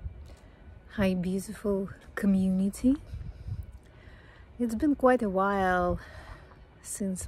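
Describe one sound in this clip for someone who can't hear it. A woman speaks warmly and close up, with pauses.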